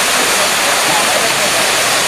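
Water splashes as a swimmer dives in.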